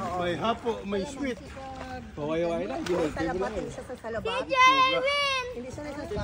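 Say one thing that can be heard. Water splashes as people move through it.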